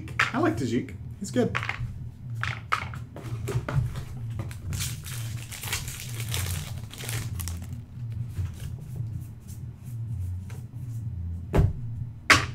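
Playing cards flick and slap against each other as they are shuffled through.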